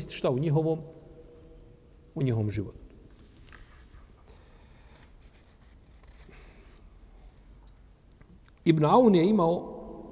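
A middle-aged man speaks calmly into a microphone, in short melodic phrases.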